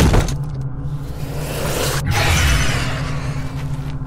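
A magic spell bursts with a rushing whoosh.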